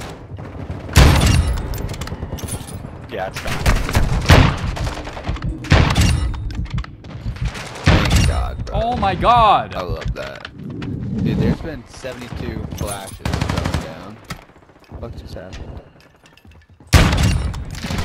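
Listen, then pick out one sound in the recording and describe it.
Rifle shots boom loudly, one after another.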